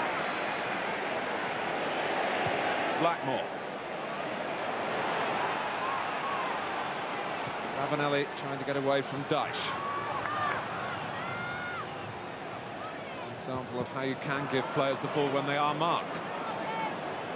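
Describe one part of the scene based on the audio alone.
A large stadium crowd murmurs and cheers steadily in the open air.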